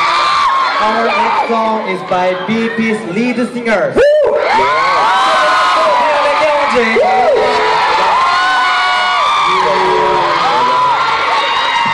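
Young men sing into microphones through loud speakers in a large echoing hall.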